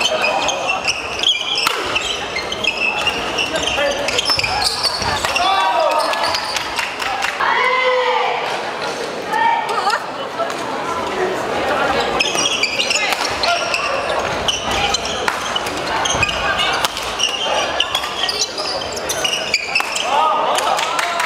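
Rackets smack a shuttlecock back and forth in a quick rally.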